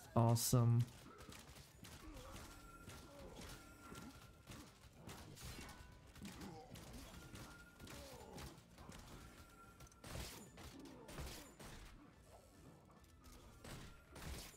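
Blades clash and slash in quick, sharp hits.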